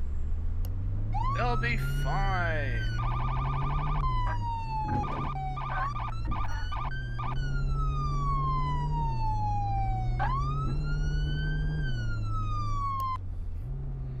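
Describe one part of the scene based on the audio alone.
A police siren wails and sweeps up and down in pitch.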